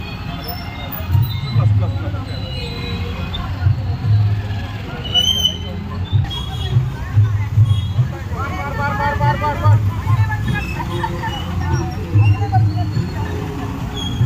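Motorcycle engines rumble and putter nearby.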